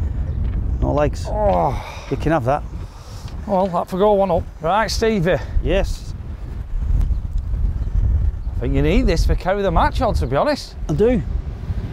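An adult man talks casually nearby.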